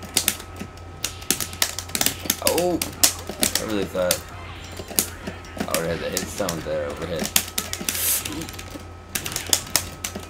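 Icy crackling and shattering effects burst out.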